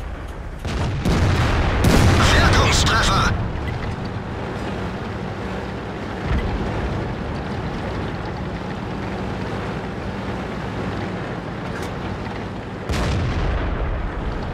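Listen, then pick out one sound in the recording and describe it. A heavy gun fires with a loud boom.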